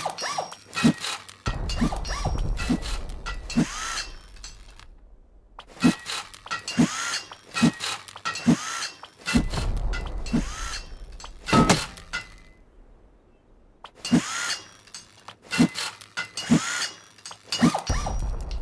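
A hammer bangs repeatedly on wood and metal.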